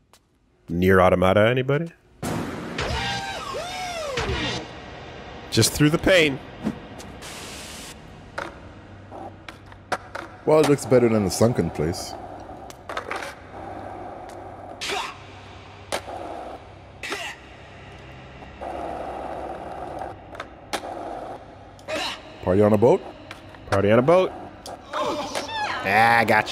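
Skateboard wheels roll and clatter on hard ground.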